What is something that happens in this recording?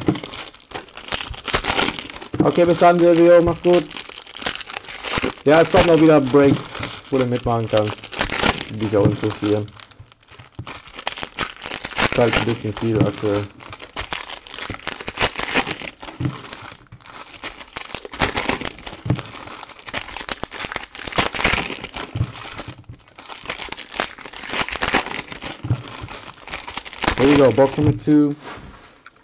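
Foil card wrappers crinkle and tear as hands open packs.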